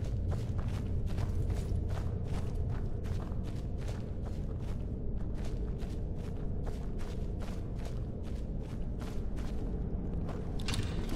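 Footsteps of someone in armour crunch on a rocky floor.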